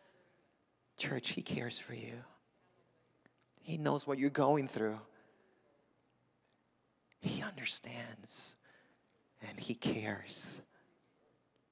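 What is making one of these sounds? A man speaks with animation into a microphone in a reverberant hall.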